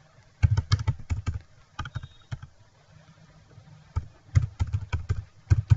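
Keys clatter on a keyboard in quick bursts.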